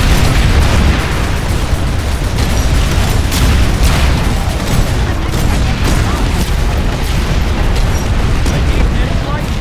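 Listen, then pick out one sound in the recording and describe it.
Laser shots zap through the air.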